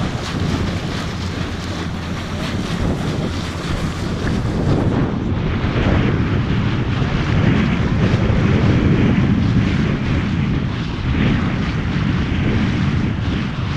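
Small waves splash and lap on choppy water.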